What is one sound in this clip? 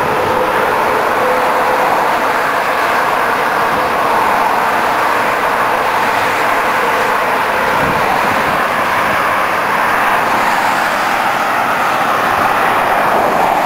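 Traffic rushes along a highway.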